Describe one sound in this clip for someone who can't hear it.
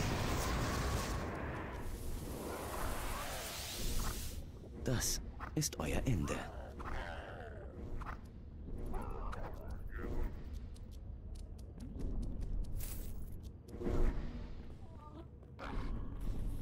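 Fire spells roar and crackle in bursts.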